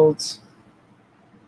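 A small metal charm clicks as a hand sets it down.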